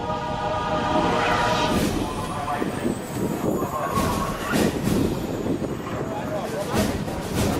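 Rough sea water churns and splashes against a ship's hull.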